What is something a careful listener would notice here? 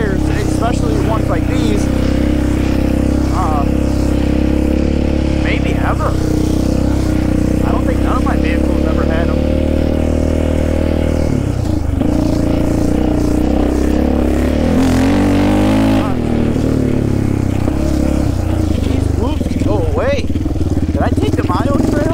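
An all-terrain vehicle engine drones close by, its pitch shifting as it speeds up and slows down.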